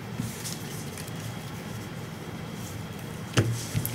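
A deck of cards is riffled and shuffled in the hands.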